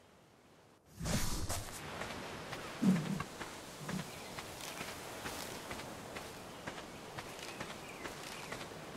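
Leaves and grass rustle as plants are pulled up by hand.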